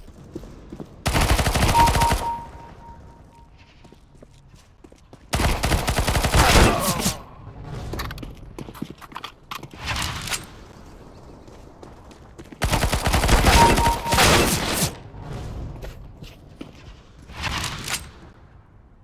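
Bursts of rapid gunfire ring out loudly.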